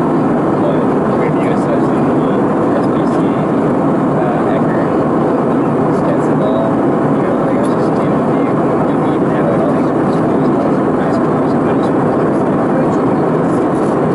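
A jet airliner's engines roar steadily inside the cabin.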